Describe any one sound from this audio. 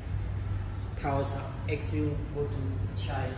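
A woman speaks calmly, giving instructions.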